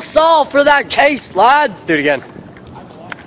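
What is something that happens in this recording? A young man talks loudly and excitedly close by.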